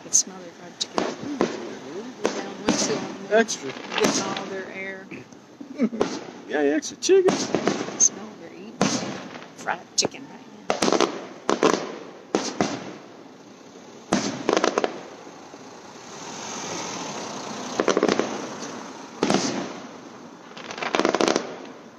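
Fireworks bang and crackle nearby, outdoors.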